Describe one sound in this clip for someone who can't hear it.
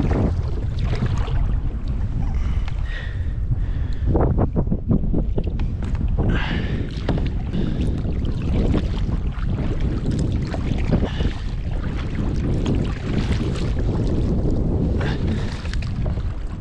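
Small waves lap against the hull of a kayak.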